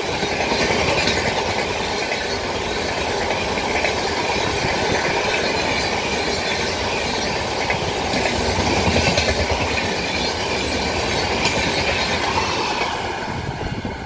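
A passenger train rumbles past close by, wheels clattering on the rails.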